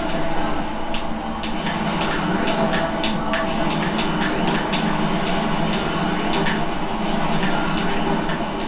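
Racing game engines whine loudly and steadily through a television speaker.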